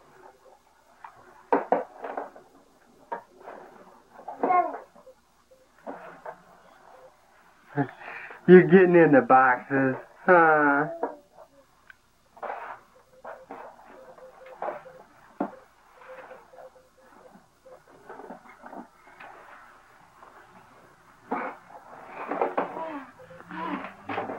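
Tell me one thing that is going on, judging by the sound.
A toddler babbles softly.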